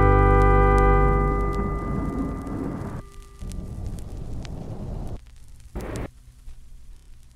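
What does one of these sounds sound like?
Wind blows across an open field.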